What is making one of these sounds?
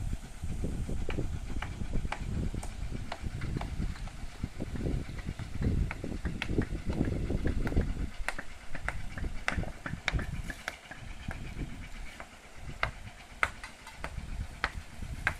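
Stones knock and clack together.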